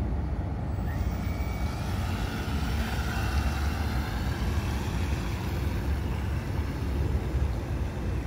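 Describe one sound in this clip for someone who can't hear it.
Water splashes and hisses behind a fast model boat.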